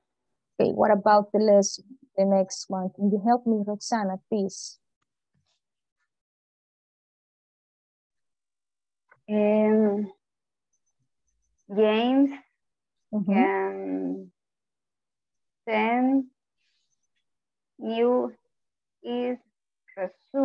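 A person speaks over an online call, in short phrases with pauses.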